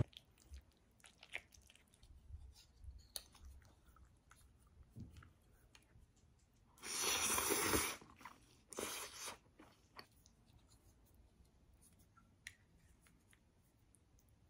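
A fork and spoon clink and scrape against a plate.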